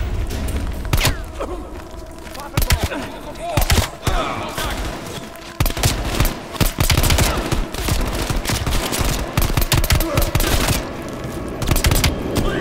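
A pistol fires several loud shots that echo.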